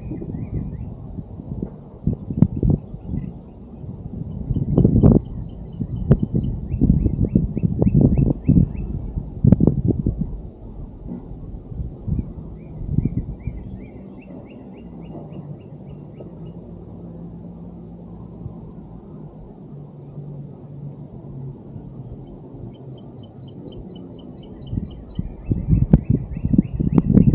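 Wind gusts rumble against the microphone outdoors.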